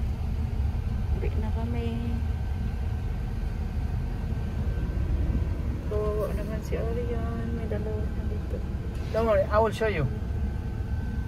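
A young woman speaks softly close by.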